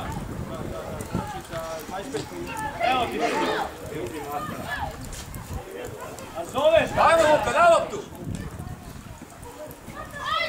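Players shout loudly to one another across an open field.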